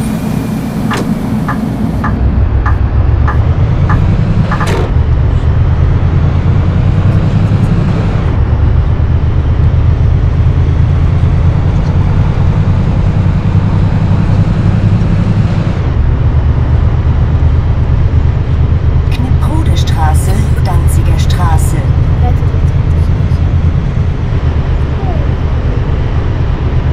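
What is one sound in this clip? A bus engine drones steadily, shifting pitch as it changes gear.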